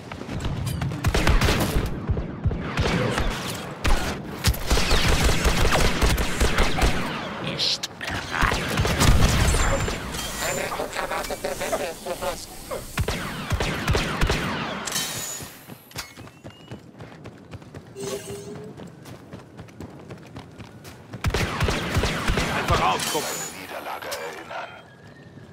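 Blaster guns fire in rapid bursts of sharp shots.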